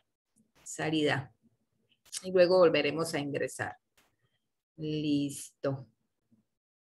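A woman speaks calmly into a microphone, heard through an online call.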